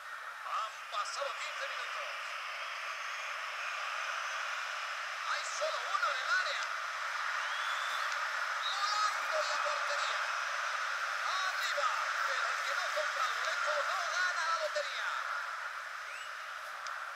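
A stadium crowd roars and cheers steadily throughout.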